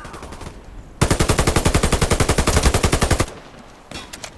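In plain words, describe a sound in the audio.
Rapid automatic gunfire bursts loudly.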